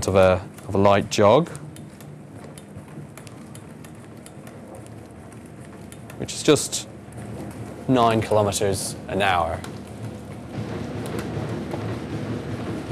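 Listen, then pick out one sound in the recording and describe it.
Footsteps thud steadily on a running treadmill belt.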